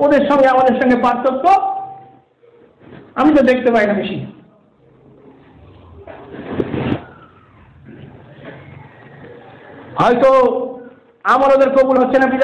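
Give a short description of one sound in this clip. A man chants melodically in short phrases with pauses.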